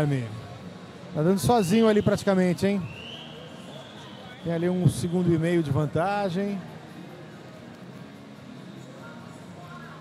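A crowd murmurs and cheers in a large echoing hall.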